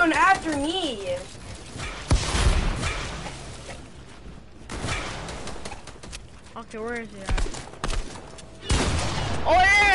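Building pieces thud and clack into place in a video game.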